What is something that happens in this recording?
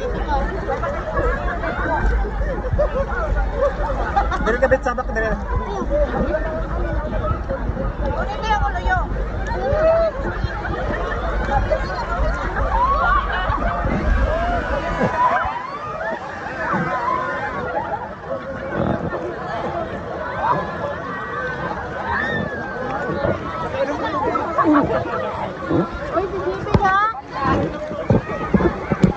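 Water splashes and sloshes around floating tubes.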